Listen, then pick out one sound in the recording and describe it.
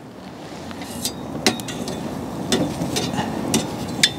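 Metal tongs clink against a grill.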